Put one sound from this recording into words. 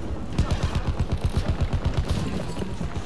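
A heavy machine gun fires a rapid burst.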